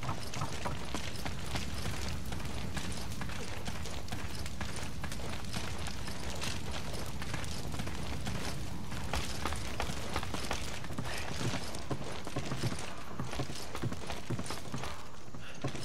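Footsteps thud on dirt and wooden boards.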